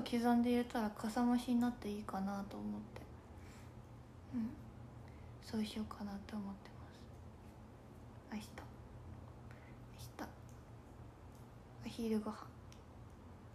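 A young woman talks softly and close to a microphone, in short bursts with pauses.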